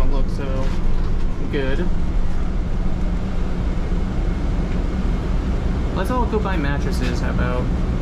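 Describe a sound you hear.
A bus engine rumbles steadily from inside the bus as it drives.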